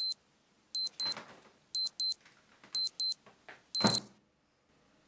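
A telephone rings in short, repeated bursts.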